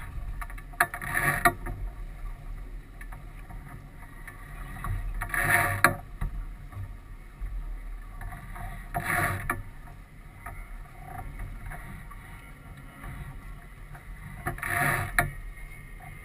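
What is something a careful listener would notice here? Water splashes against the hull of a sailing boat now and then.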